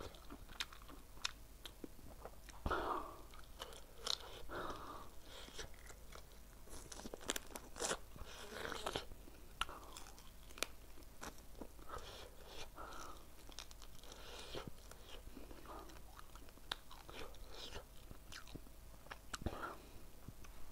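A man bites and chews food loudly and wetly, close to a microphone.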